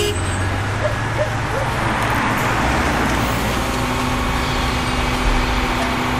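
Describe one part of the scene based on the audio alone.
A car drives up and stops close by.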